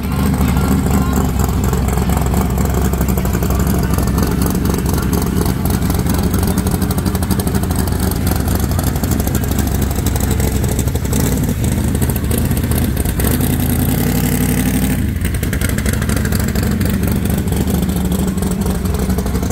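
A V8 hot rod rumbles as it rolls slowly past.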